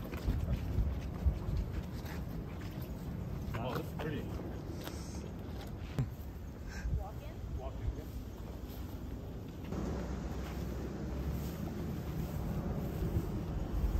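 Footsteps scuff on pavement and grass.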